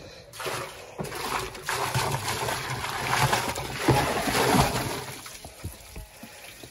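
A plastic bucket knocks against a wooden barrel.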